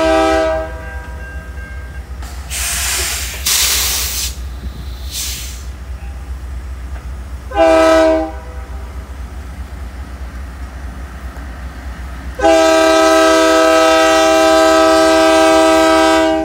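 A train horn blasts loudly in long, repeated blows.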